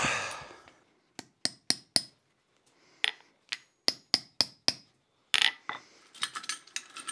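A hammer taps sharply on metal.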